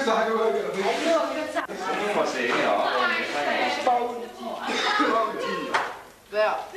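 Several young people talk with animation close by.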